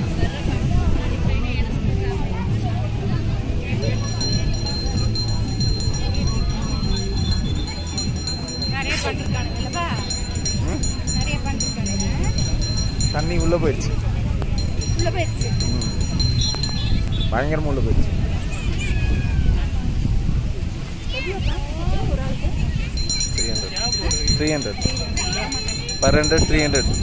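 Men and women chatter in the distance.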